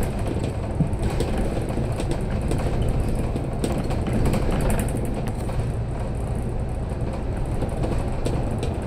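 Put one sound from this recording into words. Small rattles and clicks come from the vehicle's interior.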